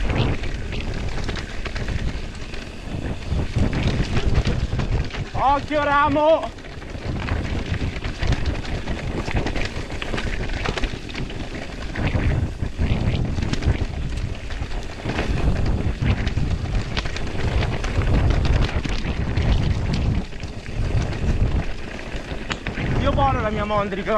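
Bicycle tyres crunch and roll over loose rocky gravel.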